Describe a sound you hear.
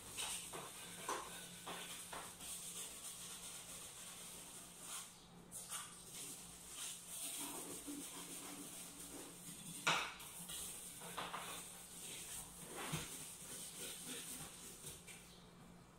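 A cloth rubs and wipes against a cabinet surface.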